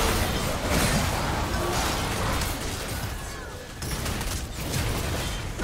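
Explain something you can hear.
Game spells crackle and blast in a busy fight.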